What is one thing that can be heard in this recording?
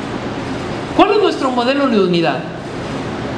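A man speaks loudly and with emphasis through a microphone in an echoing hall.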